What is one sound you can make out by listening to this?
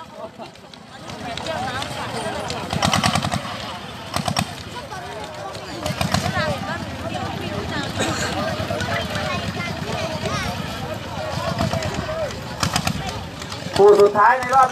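A small engine of a wheeled grass cutter runs steadily.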